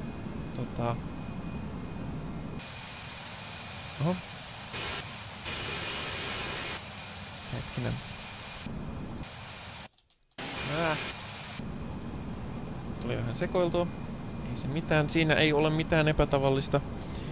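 Jet engines hum steadily during flight.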